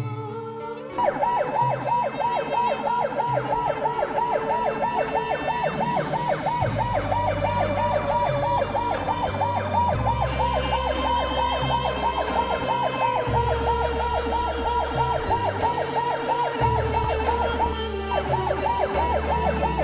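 An emergency siren wails in a fast, steady warble close by.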